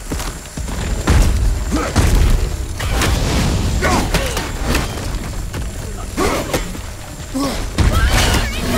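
Heavy rocks crash and rumble loudly.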